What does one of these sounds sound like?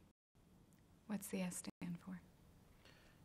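A woman speaks quietly and calmly nearby.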